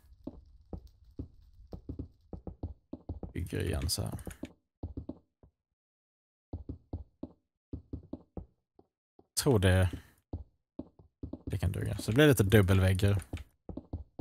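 Blocks thud softly as they are placed one after another.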